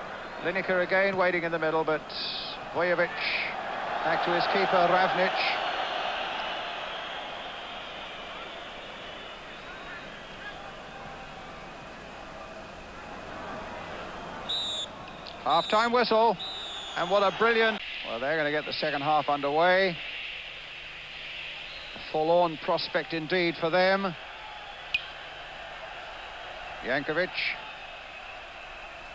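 A large crowd roars in a stadium, then settles to a murmur.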